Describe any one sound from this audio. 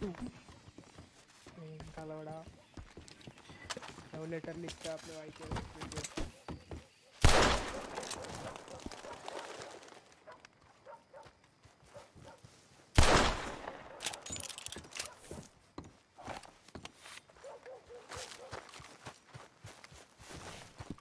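Footsteps crunch on gravel and thud on wooden boards.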